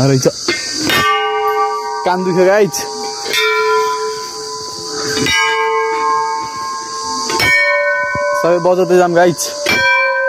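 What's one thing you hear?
A large metal bell is struck and rings with a long, lingering tone.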